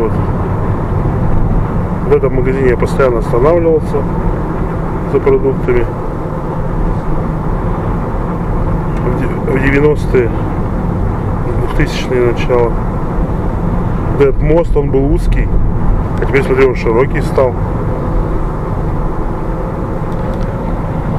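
A vehicle's engine hums steadily from inside the cab as it drives along.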